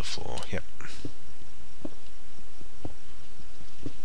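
A pickaxe chips and breaks stone with dry crunching knocks.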